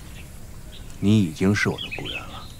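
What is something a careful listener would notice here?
A man speaks firmly and pointedly, close by.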